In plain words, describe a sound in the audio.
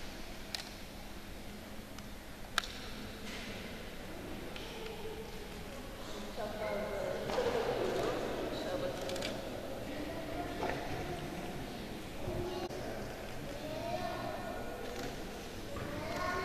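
A crowd of children and adults murmurs and chatters in a large echoing hall.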